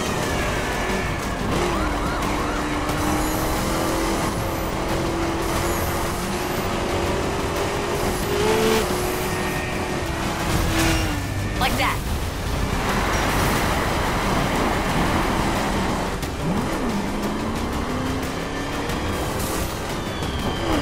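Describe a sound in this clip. A car engine roars at high revs and shifts pitch as it speeds up and slows down.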